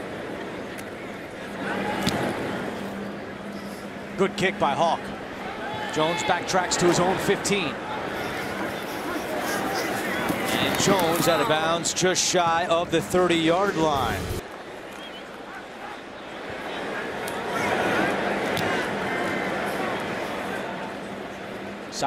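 A stadium crowd roars and cheers outdoors.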